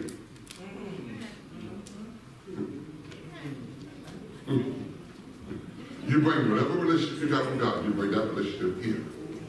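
A man speaks through a microphone in a large echoing hall, louder and more forcefully toward the end.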